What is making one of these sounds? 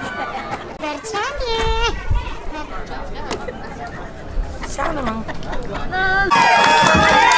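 A young woman talks excitedly close by.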